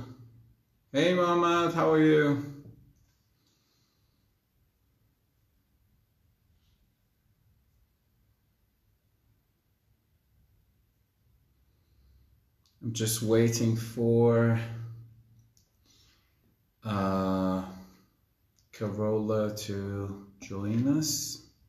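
A young man speaks calmly and close to a microphone, with long pauses.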